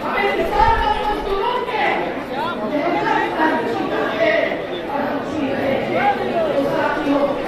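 An elderly man speaks forcefully into a microphone over loudspeakers, outdoors.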